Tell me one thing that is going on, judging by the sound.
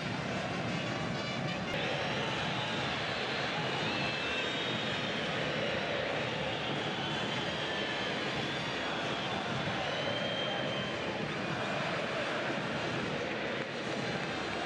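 A large stadium crowd roars and chants loudly.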